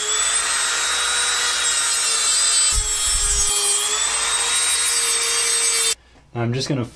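A rotary tool whines at a high, steady pitch.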